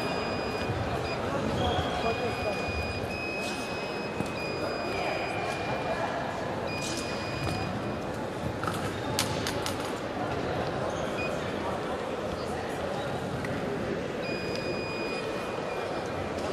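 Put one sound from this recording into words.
An electronic scoring box beeps in short, steady tones.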